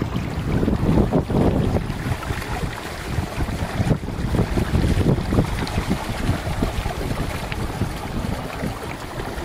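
Small waves lap against a plastic kayak hull.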